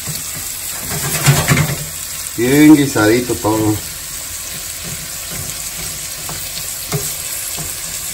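A wooden spoon scrapes and stirs food in a frying pan.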